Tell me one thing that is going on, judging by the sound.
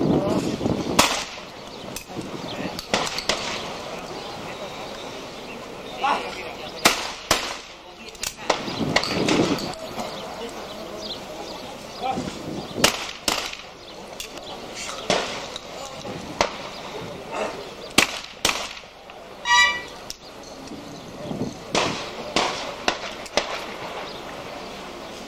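Shotguns fire sharp, cracking shots outdoors, one after another.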